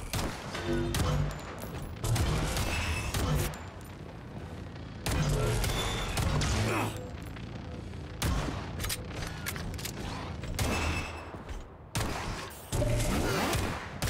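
Electric blasts crackle and buzz.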